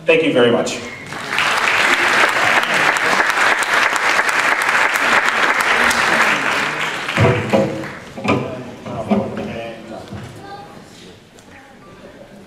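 A concert band plays in a large hall.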